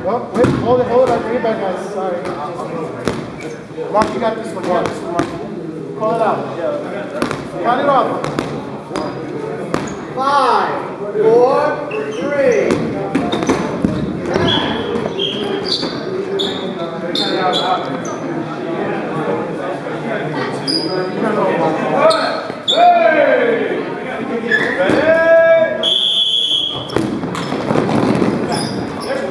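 Rubber balls thud and bounce on a wooden floor.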